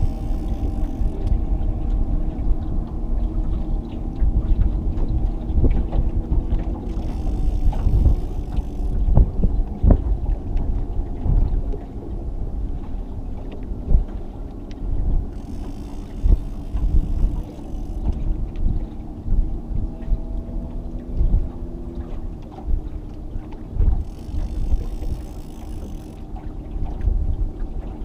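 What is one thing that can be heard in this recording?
Wind buffets a microphone outdoors, rumbling steadily.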